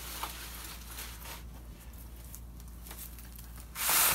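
Hands brush against plastic seedling trays.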